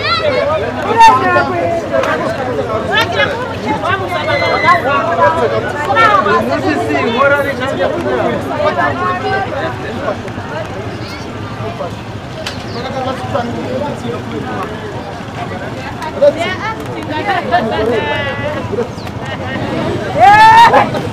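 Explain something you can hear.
Several men and women talk loudly and excitedly nearby, outdoors.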